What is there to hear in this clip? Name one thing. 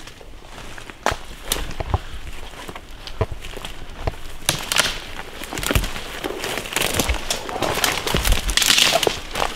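Footsteps crunch through dry leaves and undergrowth.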